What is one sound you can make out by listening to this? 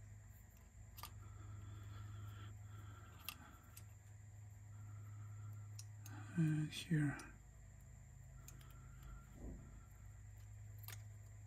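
Small plastic parts click and tap close by.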